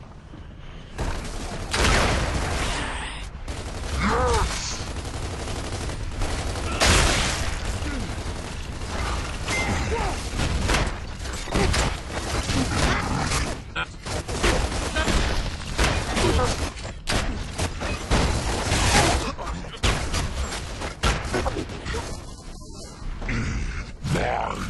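Rapid rifle fire rattles in bursts.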